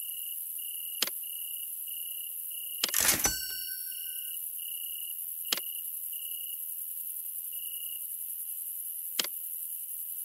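Short interface clicks sound now and then.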